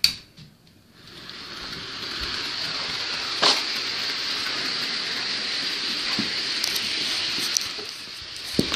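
A small toy train motor whirs steadily as the train runs along its track.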